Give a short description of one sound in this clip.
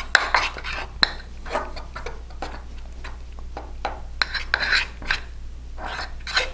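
A metal spoon scrapes and clinks against a ceramic mug while stirring a thick batter.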